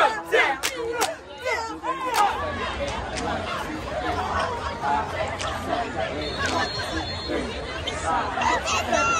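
Young women cheer and shout together outdoors.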